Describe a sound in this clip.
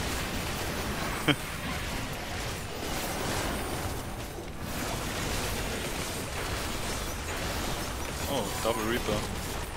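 Magic spells crackle and whoosh in a busy battle.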